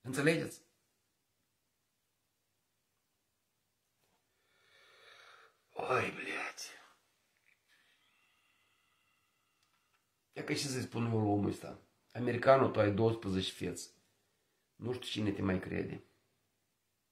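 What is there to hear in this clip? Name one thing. A middle-aged man talks calmly and close by, in short bursts with pauses.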